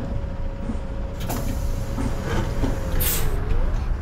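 A bus door hisses and thuds shut.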